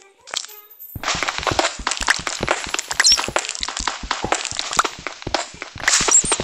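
A pickaxe chips rapidly at stone.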